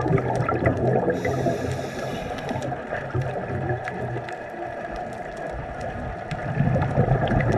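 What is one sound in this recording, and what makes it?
Air bubbles gurgle and rumble underwater.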